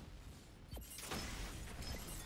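An explosion bursts and crackles.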